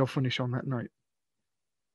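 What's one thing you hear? A young man speaks briefly over an online call.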